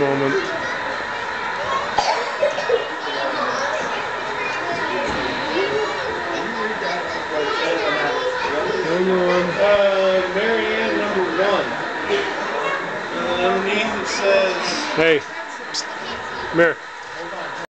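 A crowd of adults and children chatter in an echoing hall.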